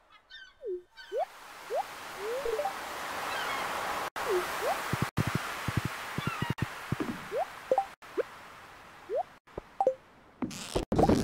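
Waves wash gently on a shore.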